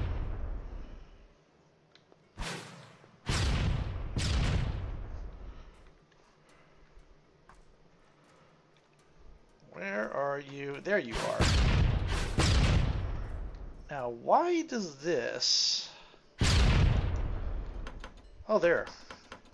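Magical bursts whoosh and ring out loudly.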